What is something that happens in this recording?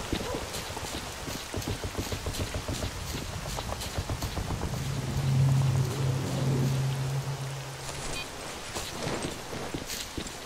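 Footsteps crunch on dirt at a steady walking pace.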